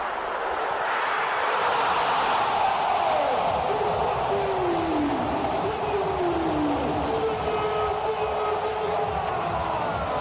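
A large stadium crowd erupts in a loud cheer.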